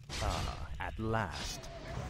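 A magic spell zaps and whooshes.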